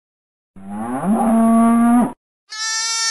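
A cow moos loudly.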